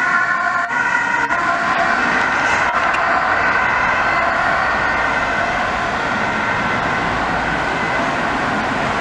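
An ambulance's two-tone siren wails and fades into the distance.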